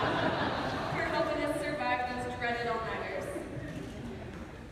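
A young man speaks through a loudspeaker in a large echoing hall.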